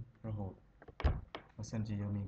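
A mouse button clicks once.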